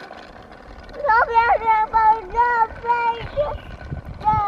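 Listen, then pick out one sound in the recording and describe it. A toy plays an electronic tune.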